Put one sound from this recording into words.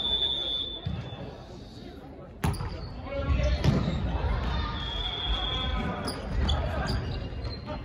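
Shoes squeak on a wooden floor.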